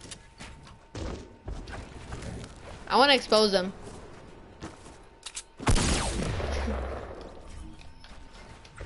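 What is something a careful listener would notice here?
Gunshots and blasts crack sharply in a video game.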